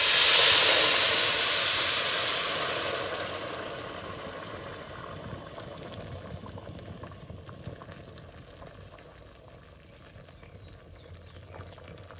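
Water pours into a metal pot, splashing loudly at first and growing quieter as the pot fills.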